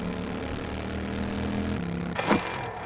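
A motorbike engine hums steadily.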